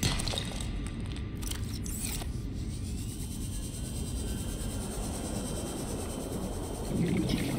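A small underwater vehicle hums steadily with a low, muffled rumble.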